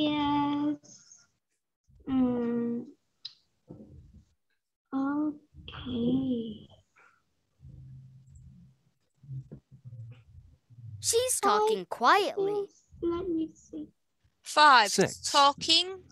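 A girl repeats words over an online call.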